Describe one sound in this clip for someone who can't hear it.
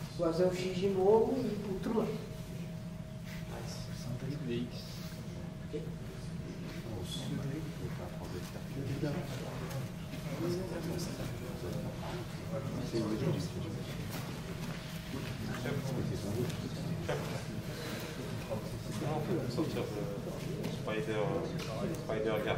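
A man speaks calmly to a group, nearby.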